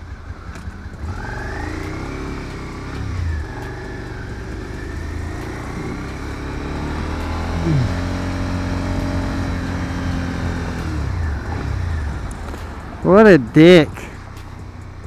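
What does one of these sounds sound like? A motorcycle engine revs up and pulls away, rising and falling in pitch.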